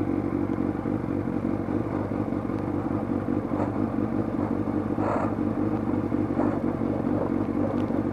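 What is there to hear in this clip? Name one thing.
Motorcycle tyres roll over a wet, rough track.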